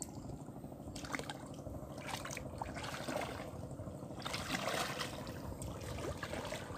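Water splashes as a man wades in.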